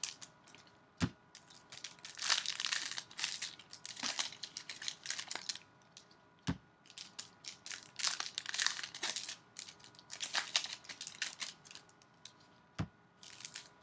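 Trading cards tap and slide against each other.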